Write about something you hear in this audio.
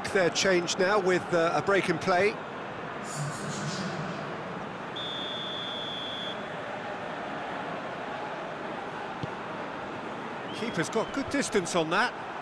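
A stadium crowd murmurs and cheers steadily in the distance.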